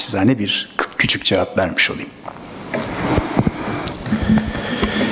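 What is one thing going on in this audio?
A man speaks calmly into a microphone in a hall with some echo.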